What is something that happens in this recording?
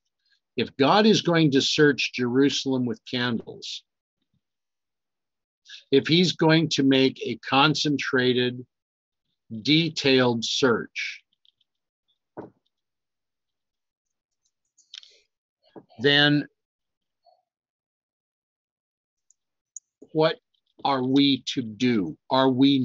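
An older man speaks calmly and close to a microphone, with pauses.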